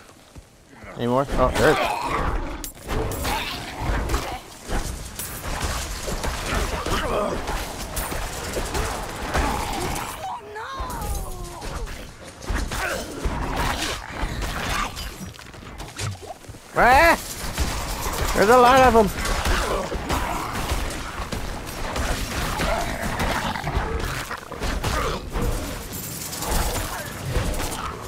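Weapons clash and slash repeatedly in a fight.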